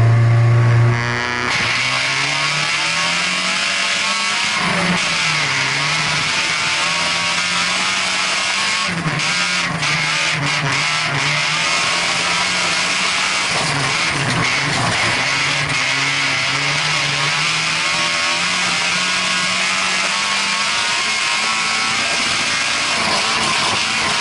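A race car engine roars and revs up and down as the car races.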